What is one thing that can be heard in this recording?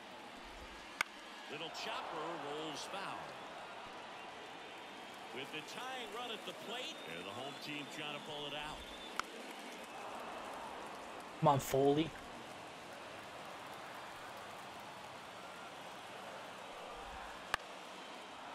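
A baseball pops into a catcher's mitt.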